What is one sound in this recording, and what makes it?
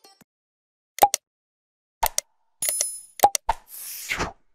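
A mouse button clicks several times.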